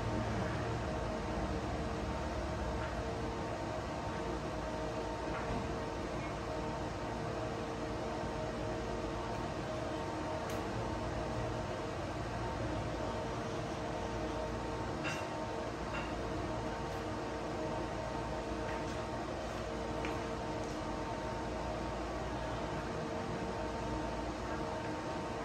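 A small fan whirs and hums steadily.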